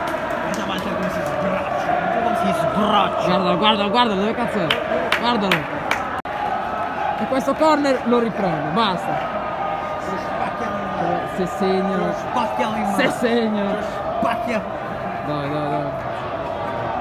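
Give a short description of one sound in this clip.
Men in the crowd shout loudly nearby.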